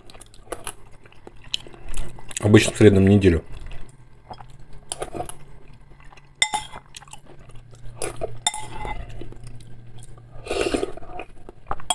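A man slurps soup from a spoon.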